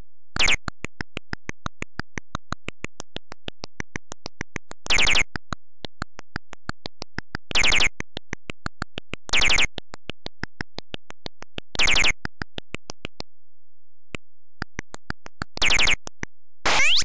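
Short rising electronic chirps sound now and then.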